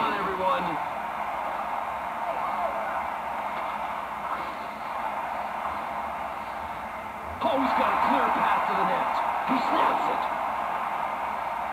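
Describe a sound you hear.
A hockey arena crowd roars steadily, swelling louder partway through.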